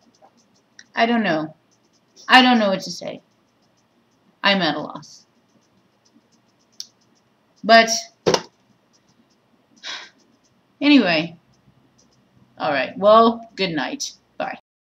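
A woman speaks close by, in short animated bursts with pauses.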